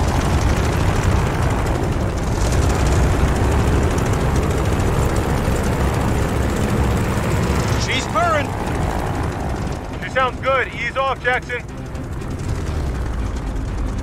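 A propeller plane's engine rumbles steadily at idle.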